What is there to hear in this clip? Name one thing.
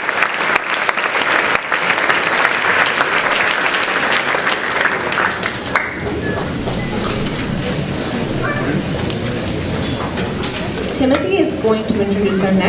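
A large string orchestra plays loudly in an echoing hall.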